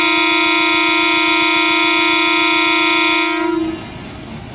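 A train horn blares loudly and steadily, then stops.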